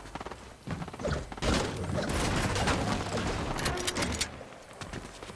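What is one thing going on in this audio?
A pickaxe strikes and breaks an object with a crunch.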